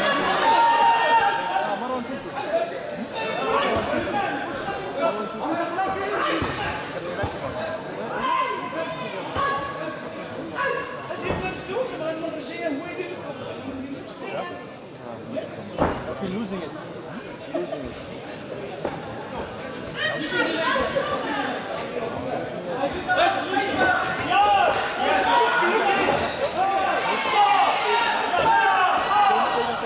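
A crowd cheers and shouts in a large echoing hall, growing louder toward the end.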